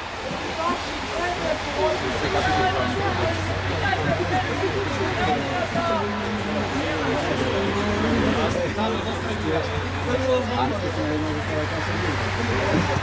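Young players shout and call to each other outdoors on an open field.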